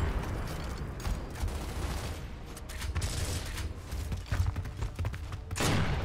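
Heavy armour clanks as a soldier shifts.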